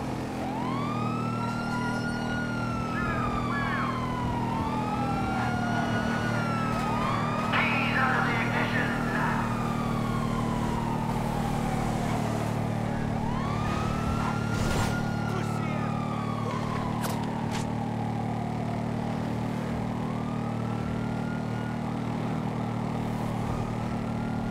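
A motorcycle engine drones steadily.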